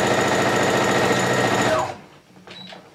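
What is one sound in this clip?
A sewing machine runs fast with a steady whir.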